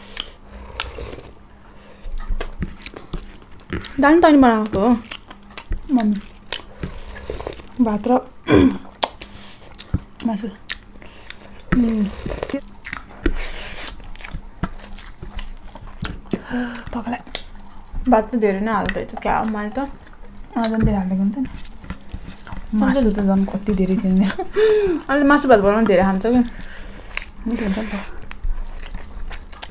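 Fingers squish and rustle through food on plates.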